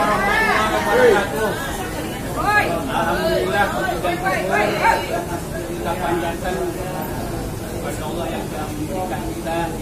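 An elderly man speaks loudly, reciting to a gathering.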